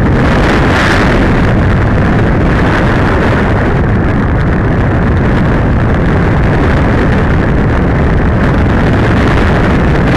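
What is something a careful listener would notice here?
Wind rushes loudly and steadily past a gliding model plane.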